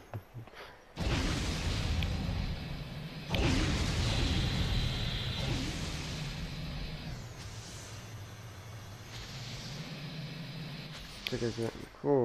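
Jet thrusters roar and whoosh.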